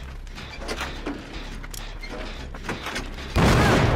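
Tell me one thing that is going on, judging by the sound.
A machine clanks and rattles as it is being repaired.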